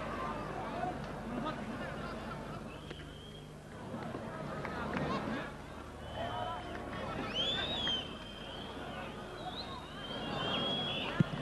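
A large crowd roars steadily in a big open stadium.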